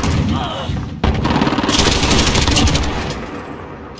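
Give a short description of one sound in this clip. A rifle fires rapid gunshots.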